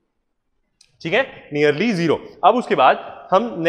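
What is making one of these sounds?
A man speaks clearly and with animation, close to a microphone.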